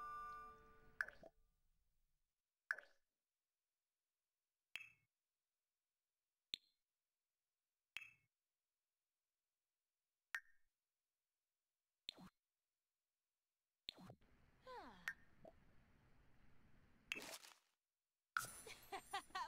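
Short soft clicks sound every second or two.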